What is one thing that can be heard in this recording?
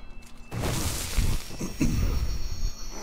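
Blows land hard in a fight.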